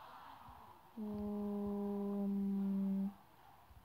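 A loud game horn blares steadily, then stops.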